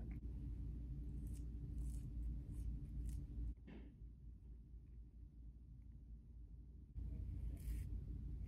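A comb brushes softly through hair.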